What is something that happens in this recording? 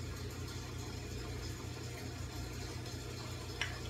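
Milk pours from a small cup into a dish.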